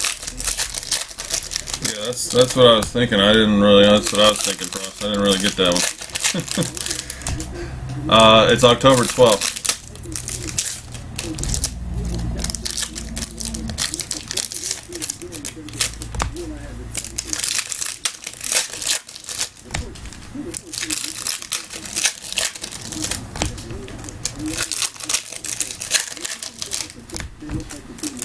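Foil card wrappers crinkle and tear.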